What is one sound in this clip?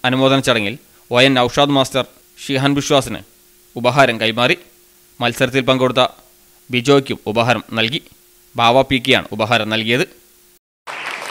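A man speaks with animation to an audience.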